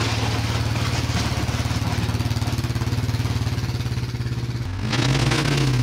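An all-terrain vehicle engine idles nearby.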